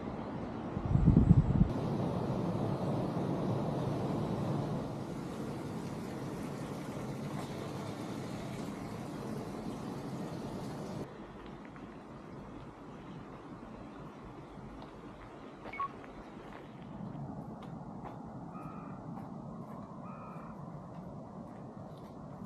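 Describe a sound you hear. Wind blows outdoors, rustling the grass.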